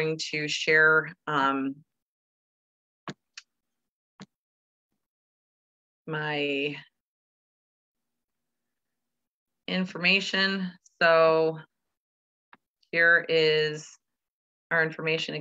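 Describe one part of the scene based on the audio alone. A woman speaks calmly through an online call microphone.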